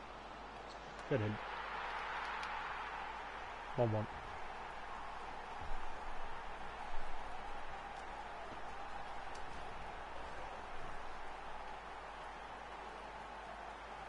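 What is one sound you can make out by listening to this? A stadium crowd roars loudly after a goal, then slowly settles.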